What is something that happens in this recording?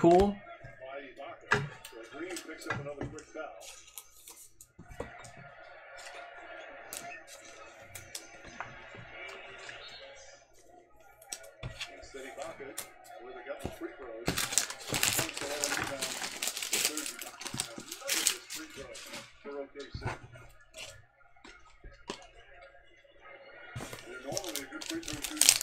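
Plastic card cases clack together as they are handled.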